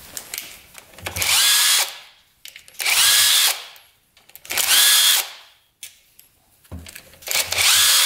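A cordless impact driver rattles as it removes bolts.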